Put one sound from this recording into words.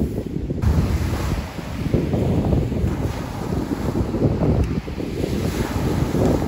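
Wind blows hard across the microphone.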